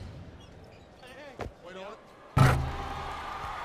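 A ball swishes through a net.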